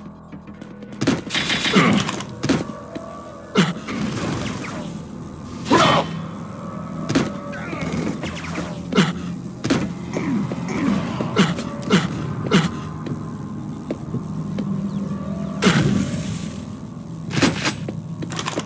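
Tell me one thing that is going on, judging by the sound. Quick footsteps patter on hard floors.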